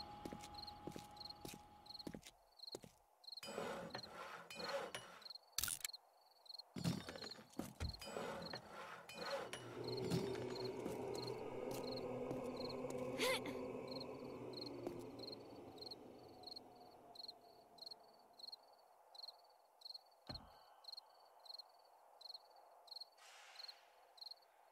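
Footsteps tread steadily on grass and stone.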